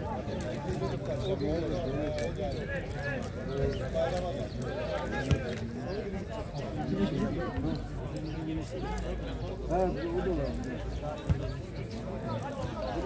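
Men shout and call to each other outdoors.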